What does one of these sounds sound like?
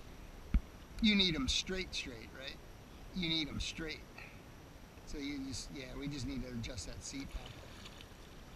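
A man speaks nearby outdoors.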